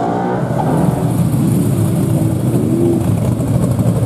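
An air-cooled Volkswagen bus engine drones as the van rolls past.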